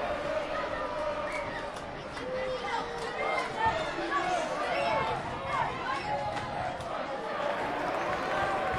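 Children shout and call out as they play, echoing in a large hall.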